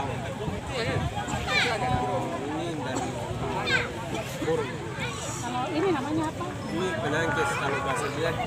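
A young woman talks close by, outdoors.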